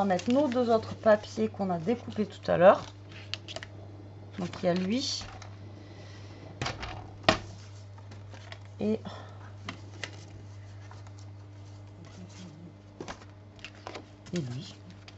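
Paper rustles and slides against a cutting mat.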